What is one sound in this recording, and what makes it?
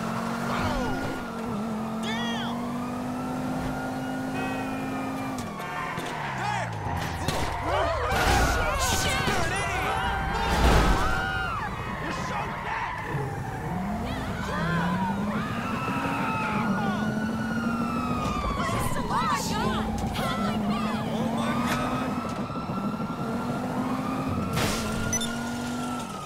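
A sports car engine roars and revs as the car speeds along.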